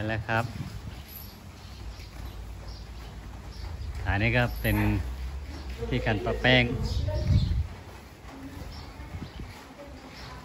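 An elephant scuffs and kicks up dry dirt.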